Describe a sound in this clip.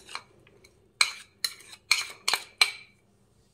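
A spoon taps against a plastic bowl.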